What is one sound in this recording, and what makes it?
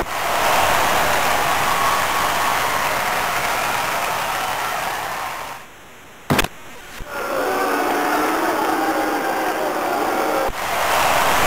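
A crowd roars steadily in a large arena.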